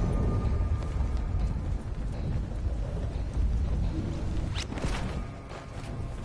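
Wind rushes loudly past a falling body.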